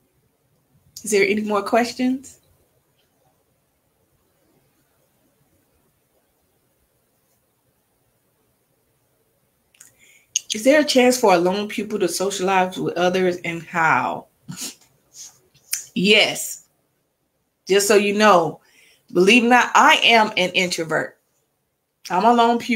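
A woman speaks calmly and warmly into a microphone, with pauses.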